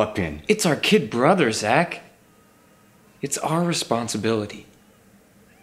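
A young man speaks in a low voice, close up.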